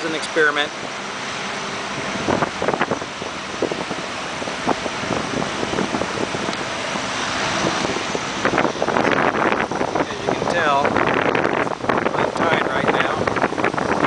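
Waves wash onto a beach with a steady rushing roar.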